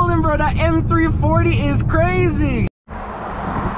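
A car engine revs hard and rises and falls in pitch, heard from inside the car.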